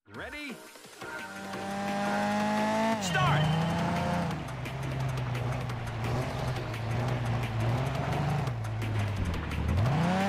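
A racing car engine revs hard and shifts through the gears.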